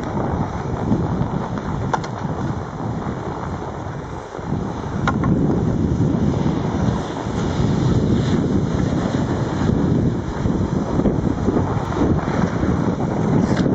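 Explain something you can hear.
Wind rumbles and buffets close by, outdoors.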